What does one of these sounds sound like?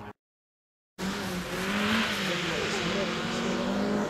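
A second rally car engine roars as a car approaches.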